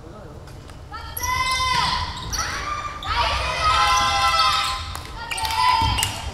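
Sneakers squeak sharply on a court.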